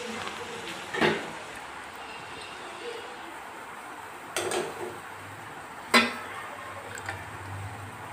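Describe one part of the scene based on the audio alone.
A metal spoon clinks against a steel pot.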